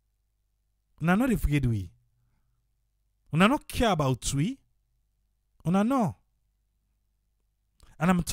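An elderly man speaks into a microphone in short bursts with pauses.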